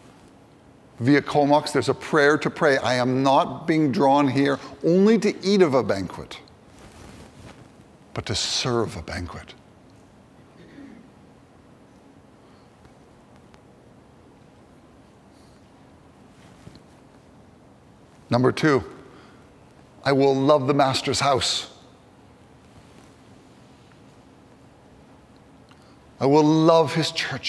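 A man speaks with animation into a microphone in an echoing hall, pausing often.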